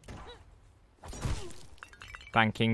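A gun fires a quick burst in a video game.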